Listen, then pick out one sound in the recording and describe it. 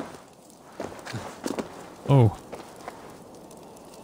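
A torch flame crackles.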